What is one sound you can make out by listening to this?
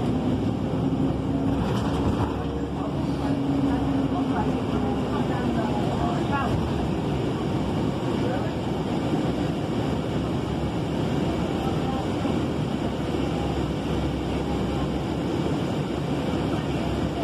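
A car's tyres hum steadily on the road.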